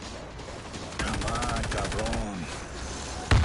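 A gun fires in a rapid burst.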